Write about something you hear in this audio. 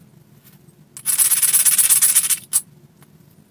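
A stone scrapes harshly against the edge of a flint.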